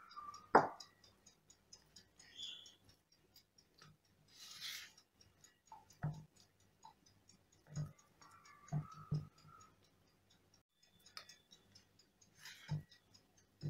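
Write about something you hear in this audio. A silicone spatula scrapes and smooths thick batter in a metal pan.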